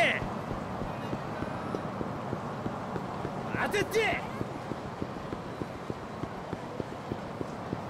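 Quick footsteps run steadily on pavement.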